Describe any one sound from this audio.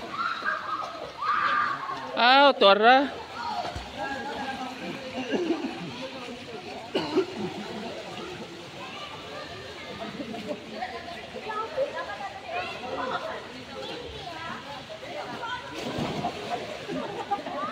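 Water splashes as swimmers move through a pool.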